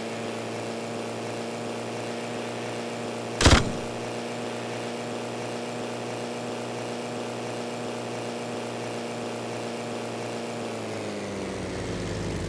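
A small propeller plane engine drones steadily, dropping lower in pitch near the end.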